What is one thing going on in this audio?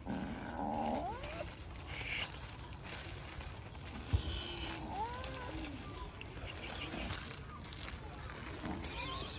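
A kitten mews in high, thin cries.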